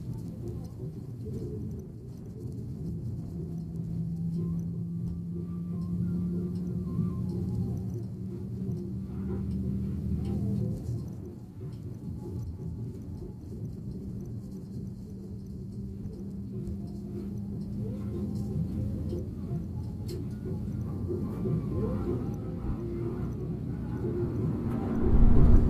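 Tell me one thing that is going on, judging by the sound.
A vehicle's engine hums steadily from inside the cabin.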